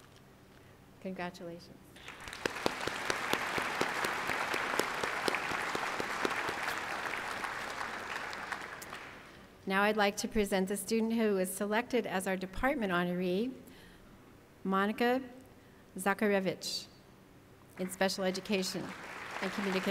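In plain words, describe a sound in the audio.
An older woman speaks calmly through a loudspeaker in a large hall.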